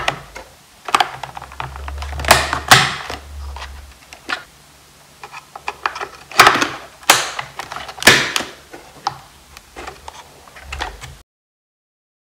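Plastic memory modules click and scrape as they are pushed into their slots.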